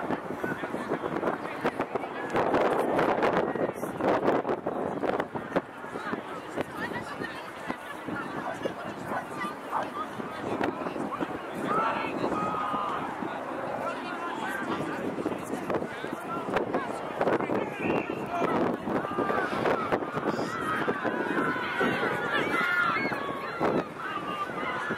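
Distant players shout to each other across an open field.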